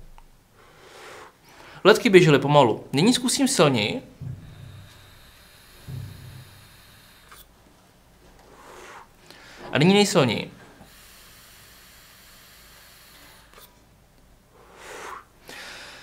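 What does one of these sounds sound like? A man exhales a long breath of vapour.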